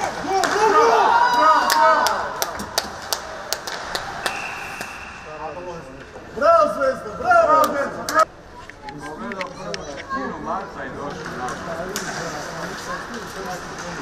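Hockey sticks clack against each other and the puck.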